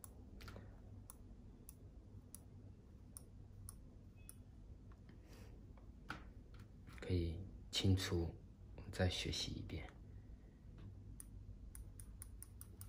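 Buttons on a small handheld remote click as they are pressed.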